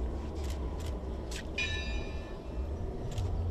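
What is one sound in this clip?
Flower stems rustle softly as a man sets them down.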